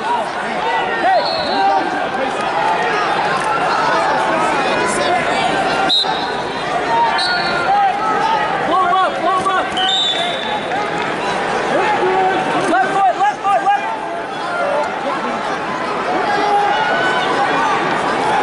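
A large indoor crowd chatters and shouts throughout, echoing in a big hall.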